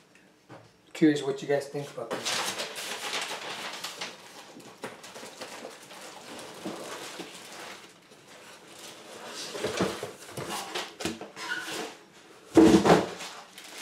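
Cardboard rustles and scrapes as a box is handled.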